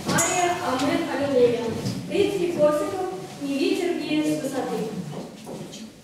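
A young woman sings in a large room.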